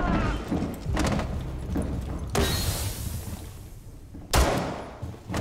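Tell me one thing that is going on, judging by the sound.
A pistol fires single sharp shots.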